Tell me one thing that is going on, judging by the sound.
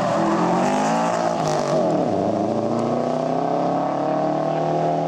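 Tyres hiss on tarmac as a car takes a bend.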